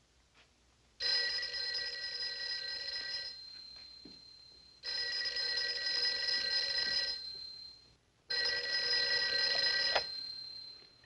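A telephone rings loudly in repeated bursts.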